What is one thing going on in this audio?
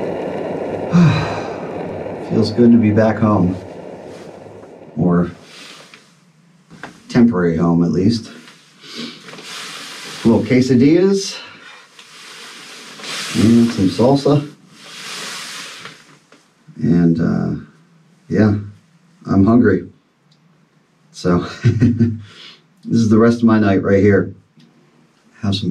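A man talks calmly close by, in short phrases.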